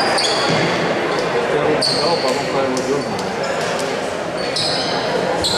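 Voices of young players chatter and call out across the echoing hall.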